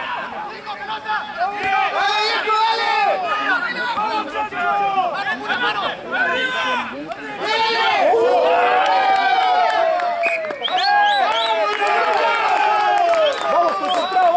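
A crowd of spectators cheers and shouts nearby.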